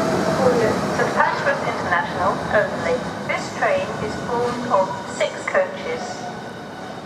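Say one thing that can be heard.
Train wheels squeal sharply on the rails, again and again.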